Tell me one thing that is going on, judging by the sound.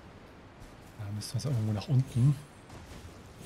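A heavy thud sounds as a figure lands after a drop.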